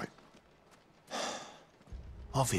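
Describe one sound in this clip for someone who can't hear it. A young man answers briefly in a low voice.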